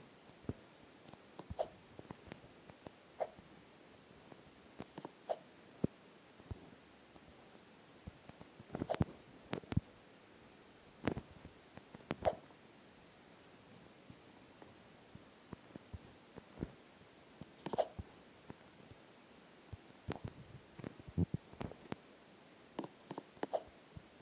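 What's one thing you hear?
Short electronic blips sound as a game character jumps.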